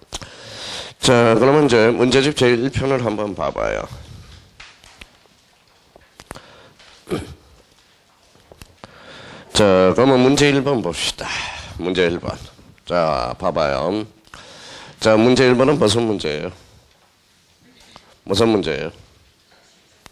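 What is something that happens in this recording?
A man lectures with animation through a microphone, in bursts with pauses.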